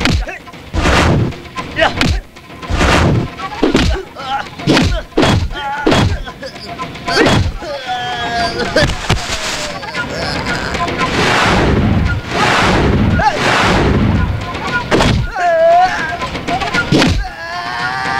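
A young man shouts and yells during a scuffle.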